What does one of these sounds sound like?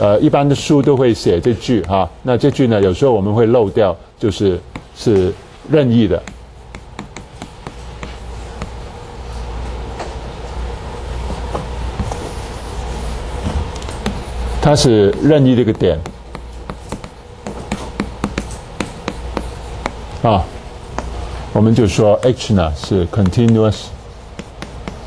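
A man speaks calmly and clearly, as if lecturing, through a microphone.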